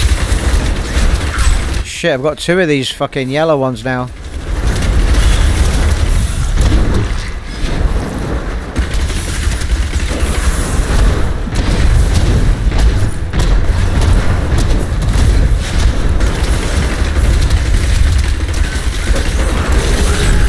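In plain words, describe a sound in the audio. Fire bursts roar and whoosh.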